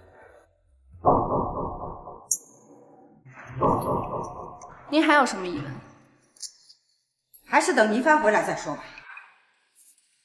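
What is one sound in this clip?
An elderly woman speaks softly.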